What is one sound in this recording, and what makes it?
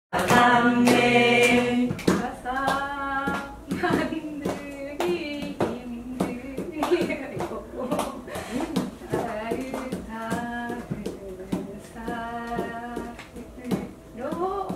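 Young women laugh and chat cheerfully.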